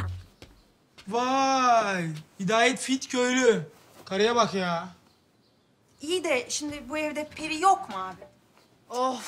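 A man speaks loudly with animation, close by.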